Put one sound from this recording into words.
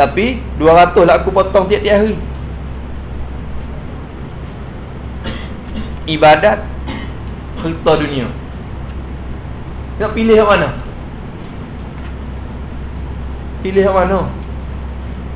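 A man speaks calmly in short phrases, with long pauses.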